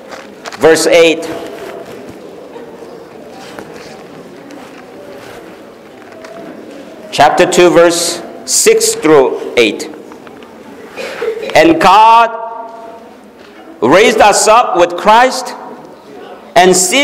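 An elderly man speaks with animation through a microphone in an echoing hall.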